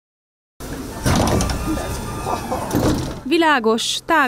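Bus doors slide open with a hiss and a rattle.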